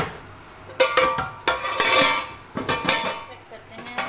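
A metal lid clanks onto a pot.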